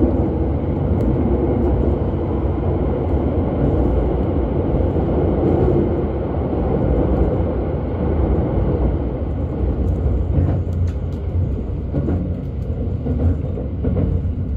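A train rumbles steadily past close by, its carriages rushing by with a low roar.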